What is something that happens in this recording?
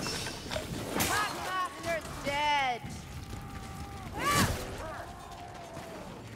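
Blades swish and strike in quick slashes.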